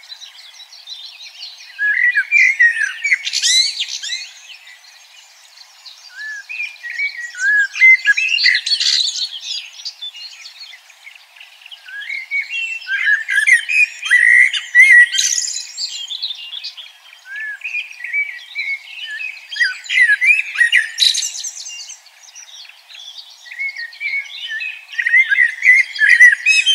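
Small birds chirp and twitter busily in bursts.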